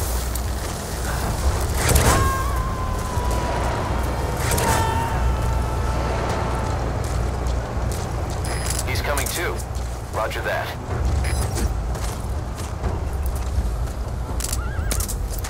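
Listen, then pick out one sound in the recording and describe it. Footsteps and clothing rustle as a soldier crouches and crawls through grass.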